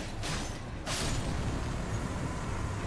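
A loud magical blast bursts and crackles.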